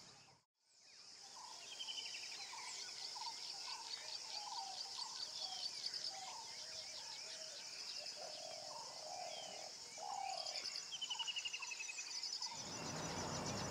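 Birds chirp and twitter outdoors.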